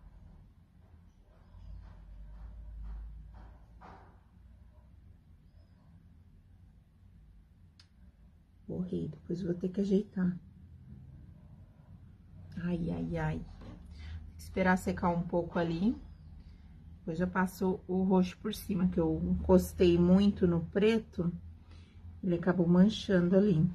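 A paintbrush dabs softly on paper.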